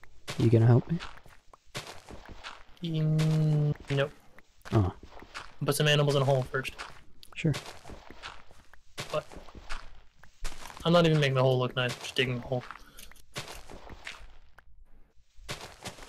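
Dirt crunches in short bursts as blocks are dug away.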